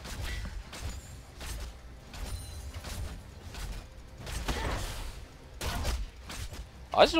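Game sound effects of spells and attacks burst and clash repeatedly.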